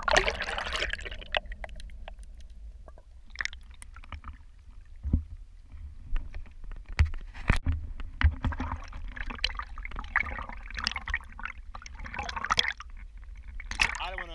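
Wind blows across open water, buffeting the microphone.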